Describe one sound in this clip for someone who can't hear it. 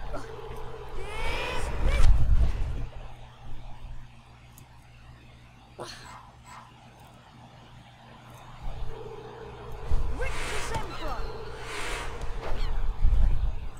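A magic spell whooshes and shimmers with sparkling chimes.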